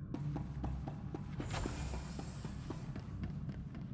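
Footsteps patter quickly on a hard metal floor.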